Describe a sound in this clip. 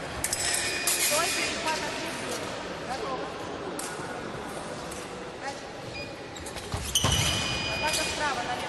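Fencers' feet stamp and shuffle on the floor in a large echoing hall.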